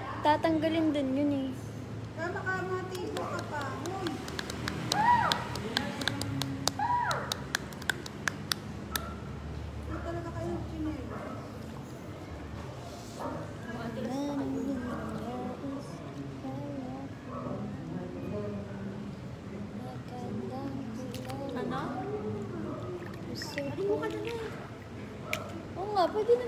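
A young woman talks calmly and close to a phone's microphone.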